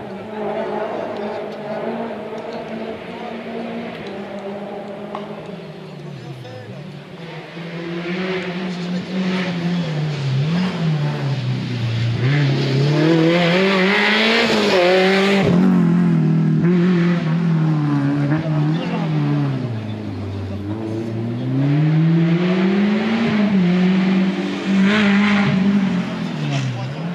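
A racing car engine roars nearby, revving up and dropping repeatedly as the car speeds closer and past.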